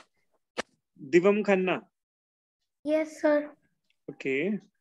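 A young child speaks in short phrases through an online call.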